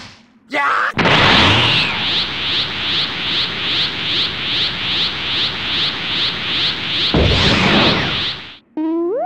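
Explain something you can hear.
An energy charge roars with a fast, steady pulsing.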